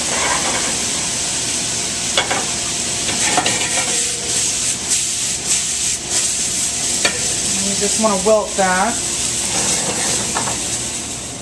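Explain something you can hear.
Food sizzles in hot pans.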